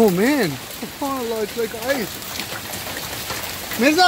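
Hail patters on the ground and cars.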